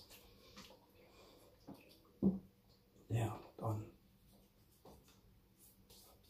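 Water splashes as a man rinses his face.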